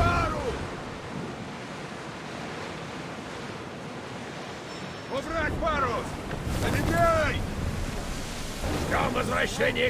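Waves wash against a ship's hull as it sails.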